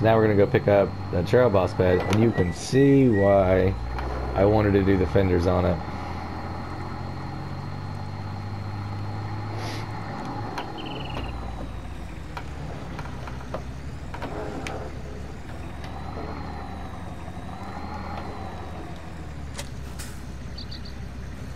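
A truck engine hums and revs as the truck drives slowly.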